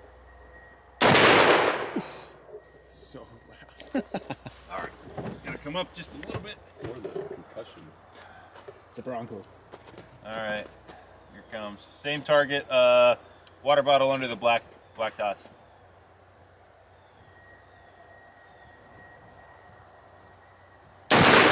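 A rifle fires a loud shot that echoes across open ground.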